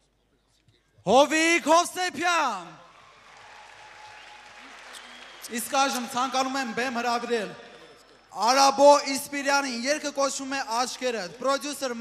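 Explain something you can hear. A young man sings loudly into a microphone.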